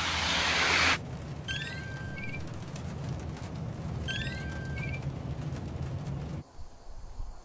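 A car engine hums low from inside the car.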